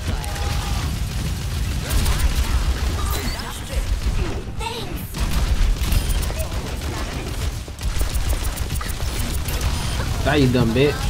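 Rapid video game blaster fire crackles and thumps.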